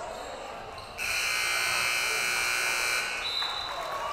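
A loud buzzer blares for two seconds.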